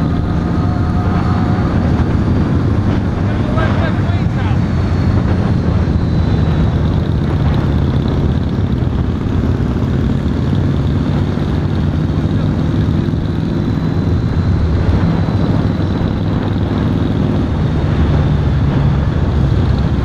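A motorcycle engine rumbles steadily up close as it rides along.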